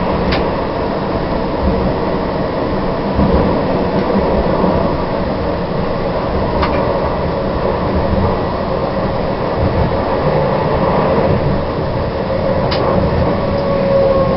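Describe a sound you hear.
A tram rumbles steadily along rails.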